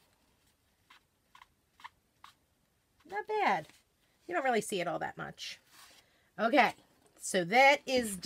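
A plastic stencil sheet crinkles as it is peeled off a board.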